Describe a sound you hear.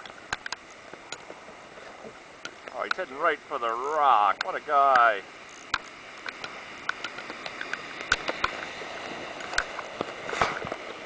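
River water rushes and churns over rapids close by.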